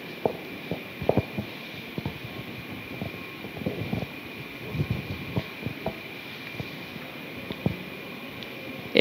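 Paper rustles and crackles in a man's hands.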